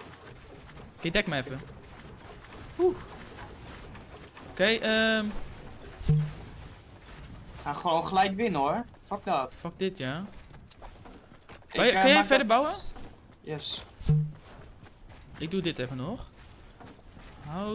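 A teenage boy talks with animation into a close microphone.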